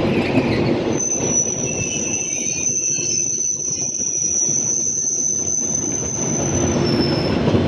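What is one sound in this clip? Train wheels squeal on the rails with a steady high whine.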